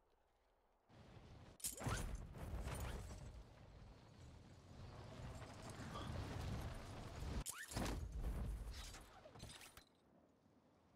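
Wind rushes loudly during a fall through the air.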